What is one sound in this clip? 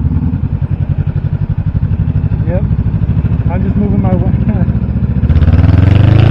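A motorcycle engine thrums steadily nearby.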